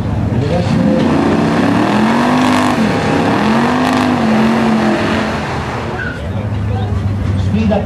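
A powerful race car engine revs loudly in repeated bursts.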